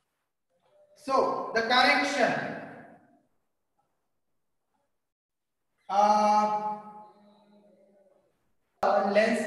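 A man speaks clearly in a lecturing tone, close by, in short bursts with pauses.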